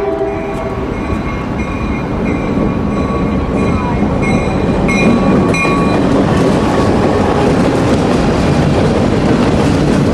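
A freight train rumbles closer and roars past.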